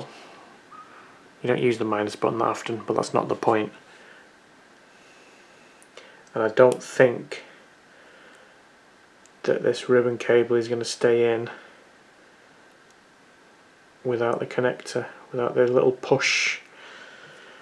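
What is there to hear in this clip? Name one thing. Metal tweezers click and tap against small plastic parts.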